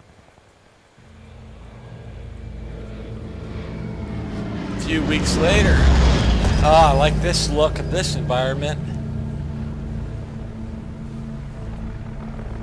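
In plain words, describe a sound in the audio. A propeller plane drones low overhead and roars past.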